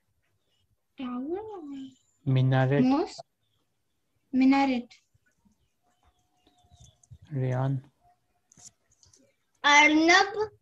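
A young child repeats words over an online call.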